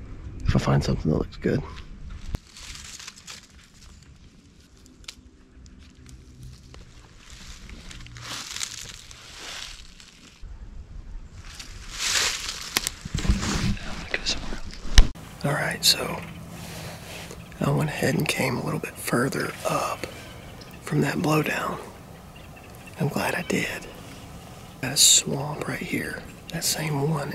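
A man talks calmly and close up.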